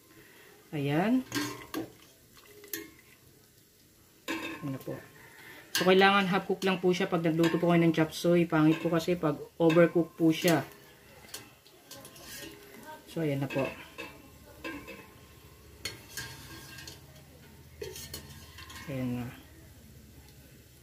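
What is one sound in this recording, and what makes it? A metal strainer swishes and scoops through water in a pot.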